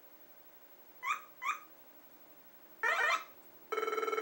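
Short electronic game blips and chimes sound from a small speaker.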